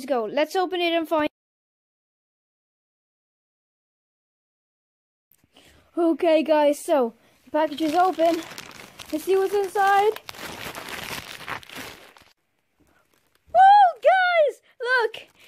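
A young girl talks excitedly and close by.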